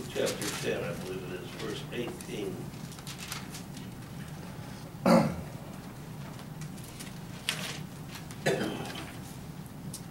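An older man speaks calmly.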